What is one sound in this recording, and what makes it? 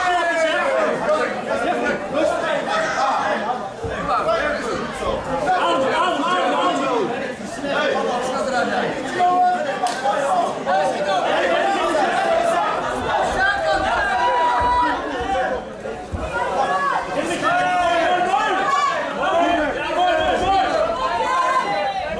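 A crowd of spectators shouts and cheers in an indoor hall.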